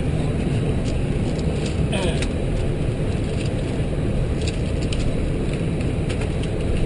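A jet airliner's engines rumble steadily inside the cockpit.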